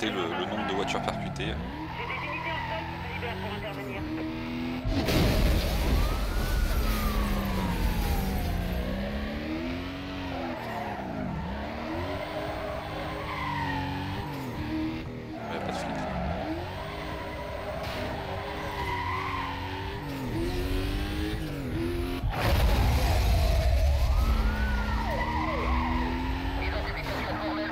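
A racing car engine roars and revs up and down at high speed.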